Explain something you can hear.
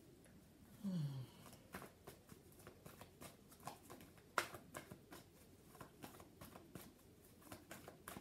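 Paper cards rustle and tap in a woman's hands.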